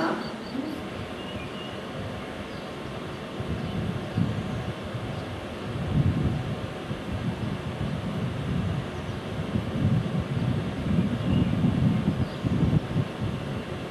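An electric passenger train approaches on the tracks, rumbling louder.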